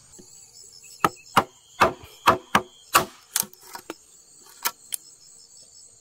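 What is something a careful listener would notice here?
A wooden mallet taps a chisel into bamboo.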